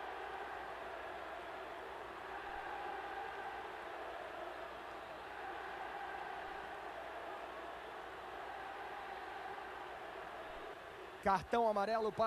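A large stadium crowd murmurs and roars steadily in the distance.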